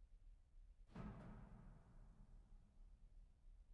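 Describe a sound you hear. A single keyboard chord sounds out suddenly and rings away.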